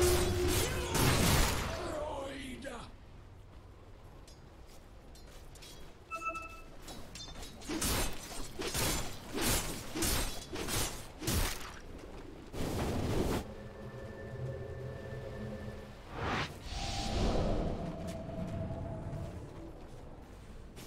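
Game combat effects clash and burst in quick bursts.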